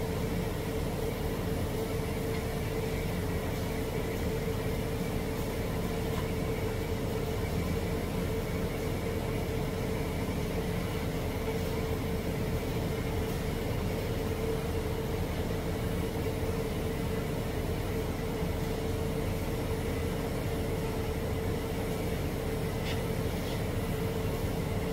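A welding arc hisses and crackles steadily.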